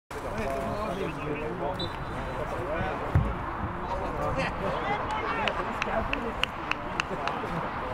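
Young men shout and chatter outdoors in the distance.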